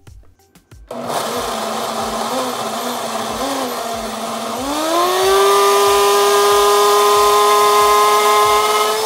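A blender motor whirs loudly, rising in pitch as it speeds up.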